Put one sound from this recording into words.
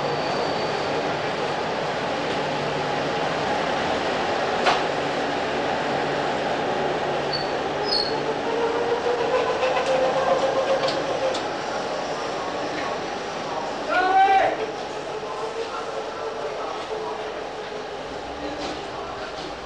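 A loaded trolley rolls over a hard floor.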